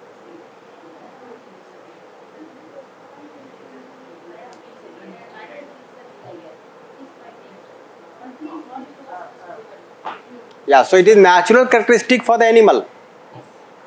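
A man talks calmly at a distance in a room, his voice briefly rising loud.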